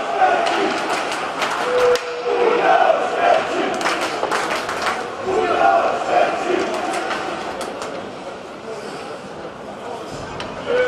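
A crowd chants and cheers in a large echoing arena.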